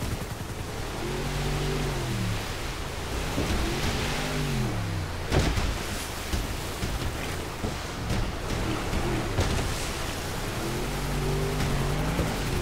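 Rushing water splashes against a boat's hull.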